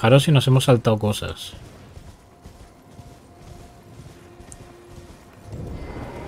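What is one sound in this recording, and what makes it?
A horse's hooves thud as it gallops over grass.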